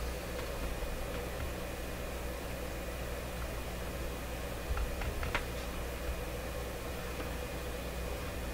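A radio speaker gives off a low steady hum.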